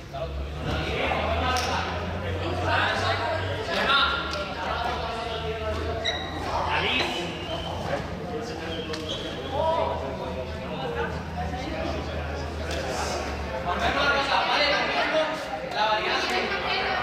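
Sneakers squeak and patter on a hard floor.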